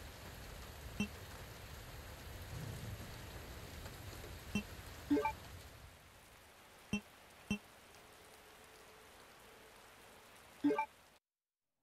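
Menu selection clicks sound sharply a few times.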